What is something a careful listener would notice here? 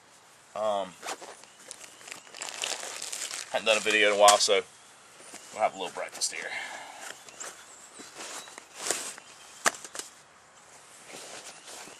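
Nylon straps and fabric rustle on a backpack.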